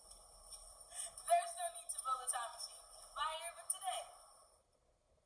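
A teenage girl speaks cheerfully, heard through a tinny loudspeaker.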